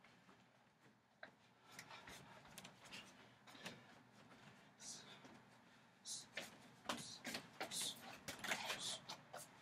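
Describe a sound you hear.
Bare feet shuffle and thud on a wooden deck.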